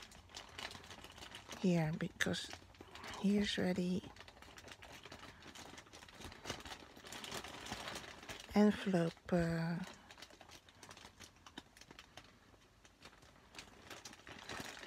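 A plastic mailer bag crinkles and rustles as it is handled.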